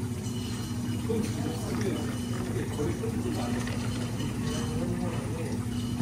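Coffee pours into a cup of ice and milk.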